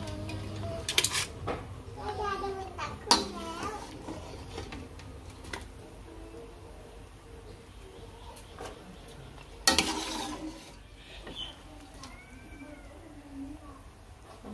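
A metal ladle clinks against a pot.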